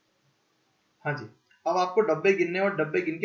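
A young man speaks calmly and closely into a microphone.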